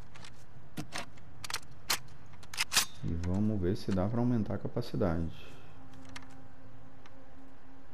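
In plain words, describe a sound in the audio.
Metal parts of a rifle click and rattle as the rifle is handled.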